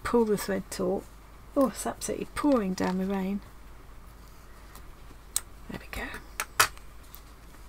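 Small scissors snip through thread.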